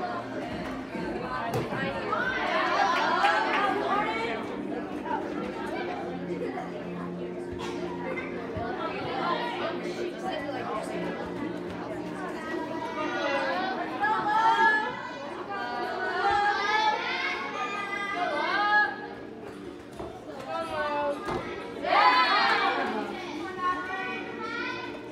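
Feet land with dull thuds on a gymnastics beam in a large echoing hall.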